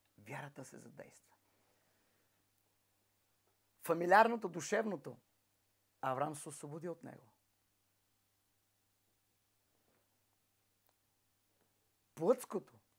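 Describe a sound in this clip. A middle-aged man speaks with animation close by, in short bursts with pauses.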